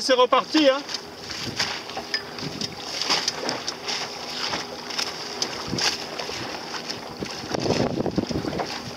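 Small waves lap and splash nearby, outdoors on open water.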